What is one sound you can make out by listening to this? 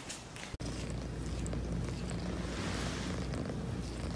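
A cat licks a kitten's fur with soft wet strokes.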